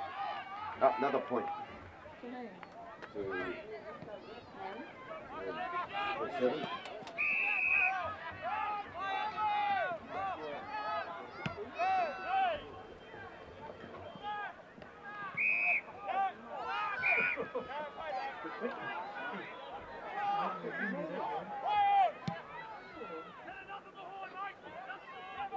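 A crowd of spectators shouts and cheers outdoors, close by.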